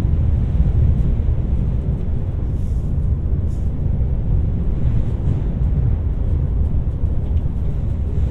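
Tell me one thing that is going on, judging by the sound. A train rumbles steadily across a bridge.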